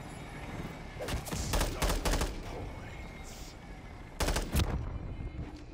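A rifle fires in bursts of gunshots.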